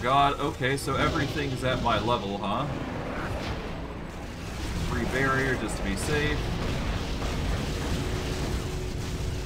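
Magic blasts crackle and whoosh in a fight.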